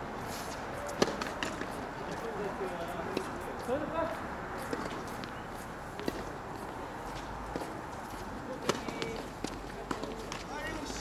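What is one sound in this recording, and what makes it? Tennis balls are struck with rackets, with sharp pops.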